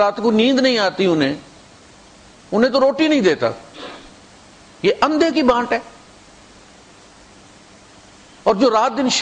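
A man recites in a slow, melodic chant through a microphone, in phrases separated by pauses.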